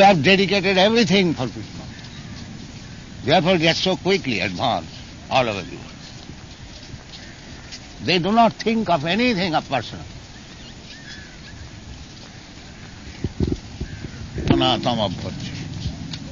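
An elderly man speaks slowly into a microphone outdoors, in short phrases with pauses.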